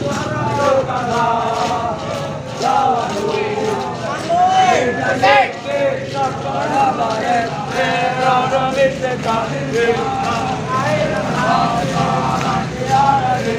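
Boots tramp on asphalt as a column of soldiers marches.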